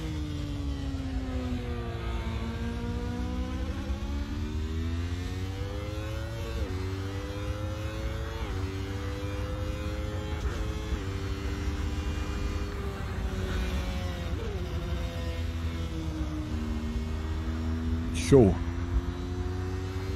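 A racing car engine whines steadily, rising and dropping in pitch with each gear change.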